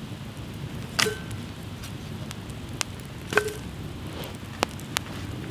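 Split wood clatters onto a fire.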